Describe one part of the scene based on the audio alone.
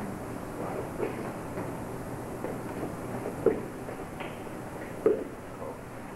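Wooden sticks clack together.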